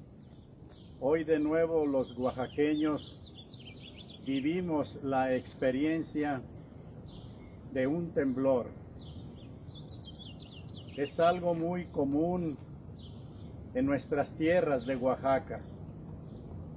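An elderly man speaks calmly and slowly, close by, with pauses between phrases.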